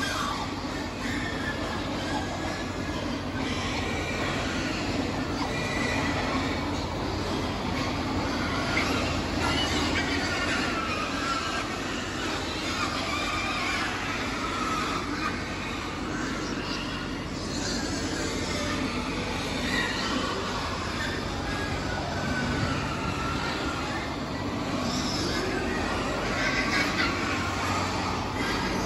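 Many pigs grunt, squeal and snuffle close by.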